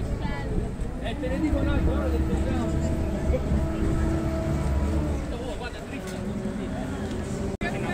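A motorboat engine hums steadily nearby.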